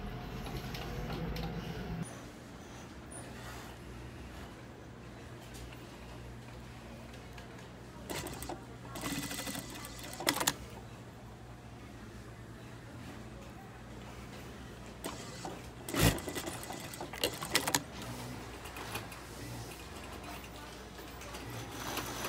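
A sewing machine motor hums and stitches fabric in short bursts.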